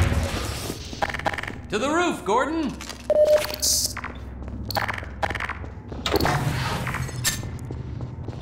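Sharp gunshots crack in short bursts.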